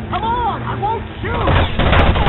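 A police siren wails close by.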